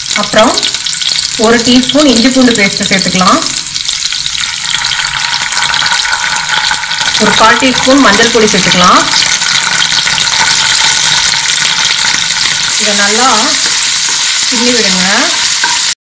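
Oil sizzles steadily in a hot pan.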